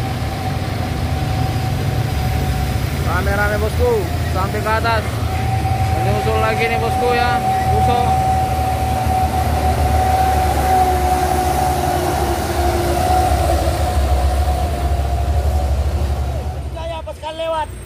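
Heavy truck engines rumble loudly as the trucks climb past close by.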